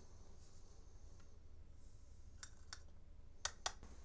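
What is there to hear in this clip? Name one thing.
Powder trickles softly through a funnel.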